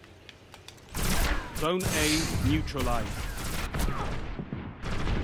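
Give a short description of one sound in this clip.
Rapid gunfire rings out in bursts.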